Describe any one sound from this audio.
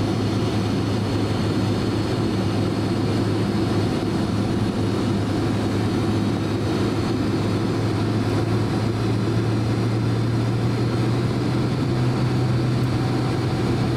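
A jet engine hums and roars steadily inside an aircraft cabin.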